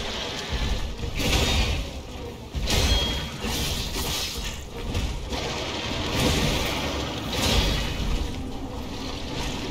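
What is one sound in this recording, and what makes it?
A blade clashes and strikes with heavy impacts.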